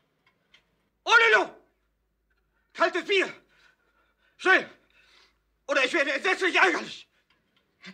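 A man cries out loudly and urgently.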